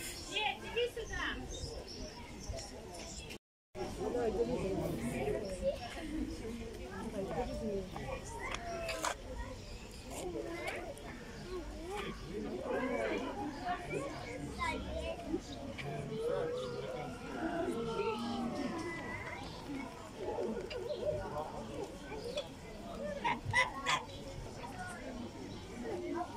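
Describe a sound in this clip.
Geese and ducks honk and quack close by.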